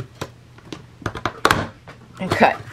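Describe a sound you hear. A paper punch clunks down through paper.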